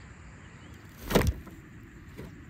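A load of manure thuds out of a tipped metal wheelbarrow.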